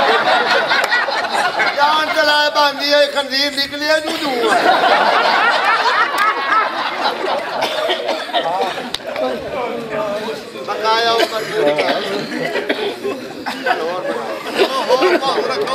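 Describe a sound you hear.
Men in a small crowd laugh and call out.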